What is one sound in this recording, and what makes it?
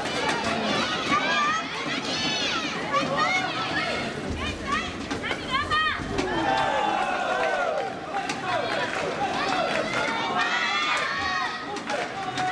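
Players' shoes squeak on the court floor.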